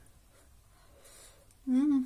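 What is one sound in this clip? A spoon clinks against a woman's teeth.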